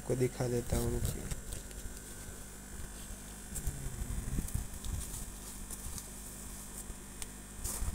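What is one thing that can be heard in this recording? Fingers rustle through dry food pellets in a plastic tub.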